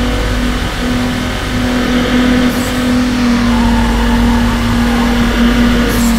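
A racing car engine roars steadily at high revs.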